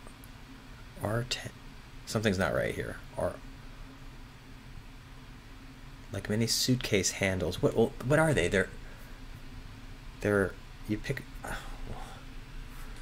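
A man talks calmly and thoughtfully, close to a microphone.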